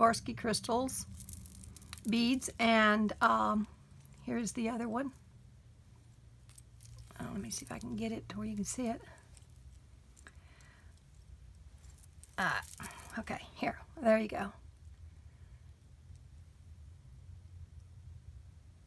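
Small metal links and beads clink softly as they are handled.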